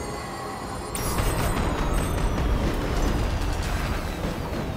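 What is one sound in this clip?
Fireworks burst and crackle loudly.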